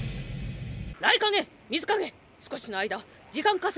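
A woman shouts urgently.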